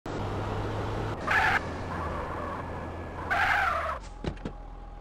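A car engine runs and revs.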